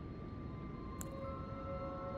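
A short menu blip sounds once.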